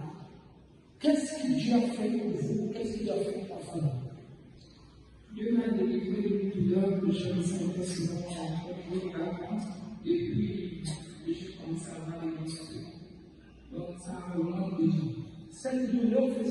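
A young woman speaks calmly into a microphone, close by.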